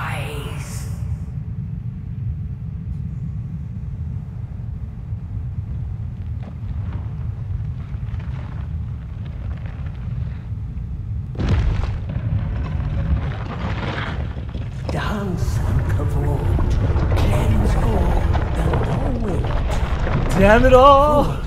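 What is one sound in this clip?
A large beast breathes with a deep, heavy rumble.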